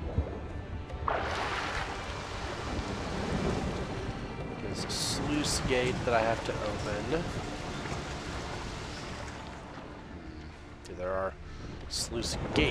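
Water splashes as a swimmer breaks the surface and strokes along.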